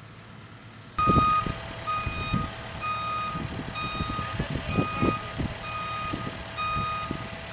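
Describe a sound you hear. A reversing alarm beeps steadily at an even pace.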